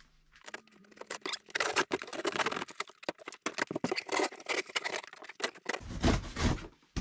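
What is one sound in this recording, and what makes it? Cardboard rustles and crackles as a box is handled.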